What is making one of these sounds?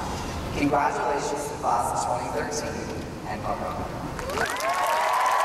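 A young man speaks with animation through a microphone in a large echoing hall.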